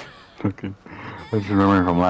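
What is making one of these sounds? A young woman shrieks with laughter.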